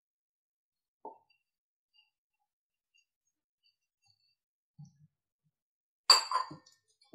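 A metal tumbler clinks against a steel bowl.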